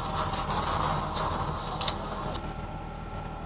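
A young woman talks casually into a microphone.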